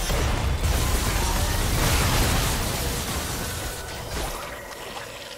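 Rumbling impact effects boom and then fade.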